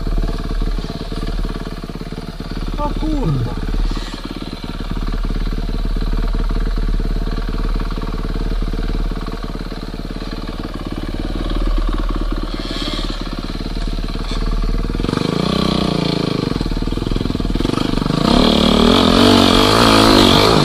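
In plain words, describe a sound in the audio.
A dirt bike engine idles and revs up close.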